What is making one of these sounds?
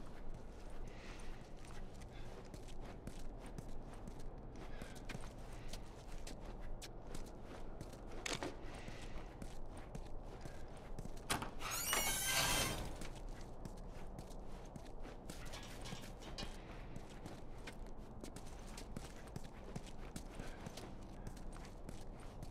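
Footsteps walk slowly over a hard floor indoors.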